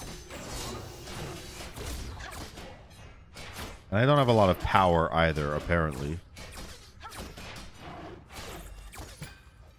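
Weapons clash and magic effects whoosh in a fight.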